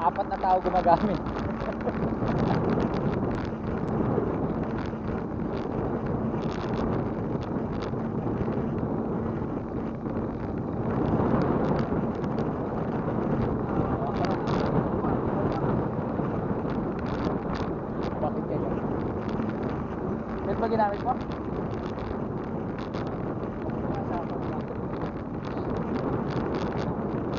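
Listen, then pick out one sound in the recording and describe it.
A bicycle's chain and tyres rattle and hum on the road.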